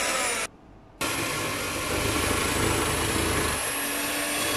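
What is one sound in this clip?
An electric coconut scraper whirs steadily.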